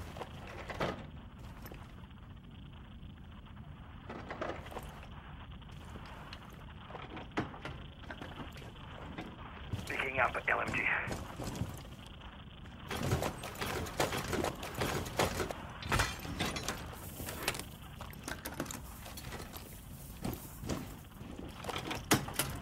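Footsteps tap on a hard floor as a game character walks.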